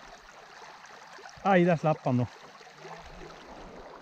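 A river flows gently.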